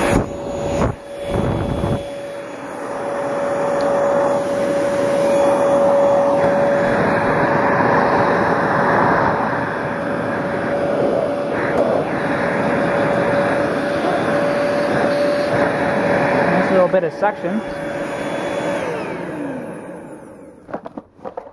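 A handheld vacuum cleaner runs with a steady high whine, then winds down.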